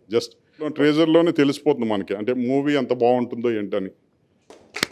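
A man speaks into a microphone, close up and with animation.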